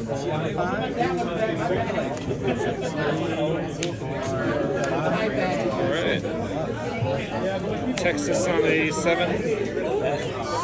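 Playing cards slide and tap softly on a mat.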